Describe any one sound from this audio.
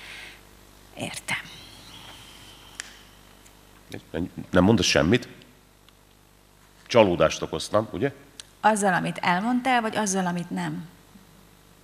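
A woman reads out calmly into a microphone.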